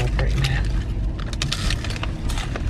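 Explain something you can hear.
A woman bites and chews crunchy food.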